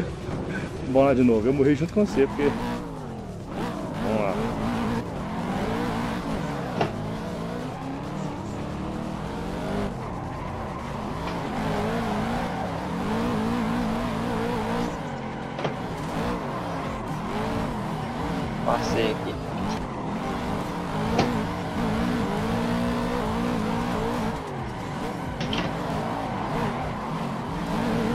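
A car engine revs high and wavers up and down.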